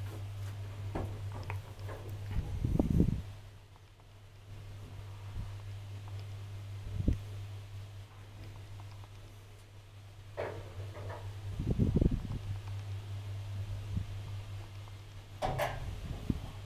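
Rattles and thumps come from the elevator car as it moves.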